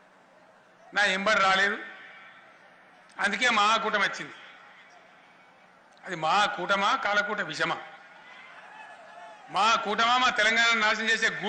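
A middle-aged man speaks forcefully through a loudspeaker in short bursts with pauses.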